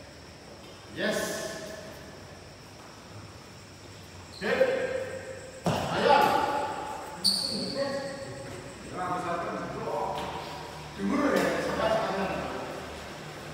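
Men call out and shout to each other in a large echoing hall.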